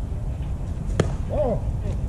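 A bat strikes a baseball with a sharp crack.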